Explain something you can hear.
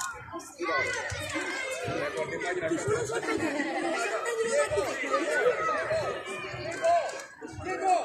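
A crowd of young children shouts and cheers outdoors.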